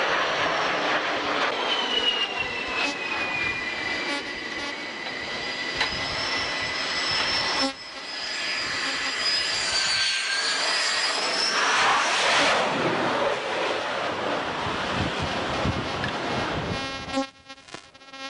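Strong wind roars across the microphone outdoors.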